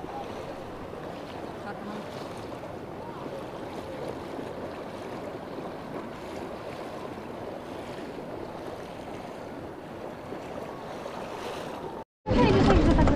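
Water splashes and laps around a small boat in the wind.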